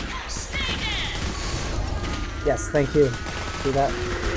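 A minigun fires in a rapid rattling burst.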